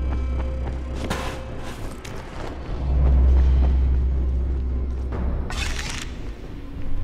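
Footsteps crunch over broken glass and debris.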